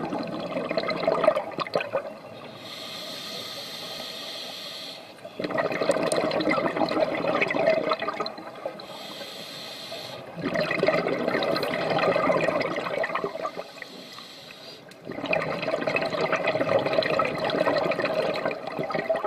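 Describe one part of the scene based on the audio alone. Exhaled air bubbles gurgle and rumble loudly underwater in repeated bursts.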